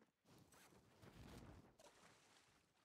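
Water splashes loudly as a body plunges in.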